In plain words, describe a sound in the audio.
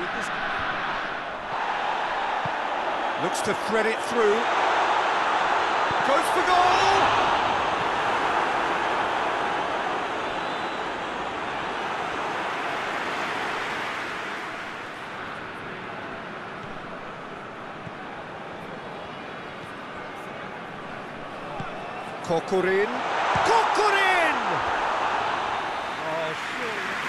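A large stadium crowd roars steadily, swelling and fading.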